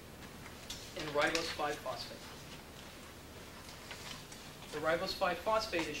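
A man lectures calmly to a group, pausing between phrases.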